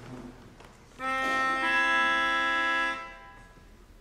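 A melodica plays a loud sustained chord.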